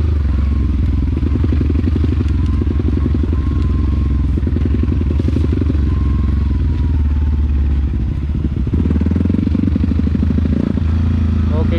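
Tyres crunch over a muddy dirt track.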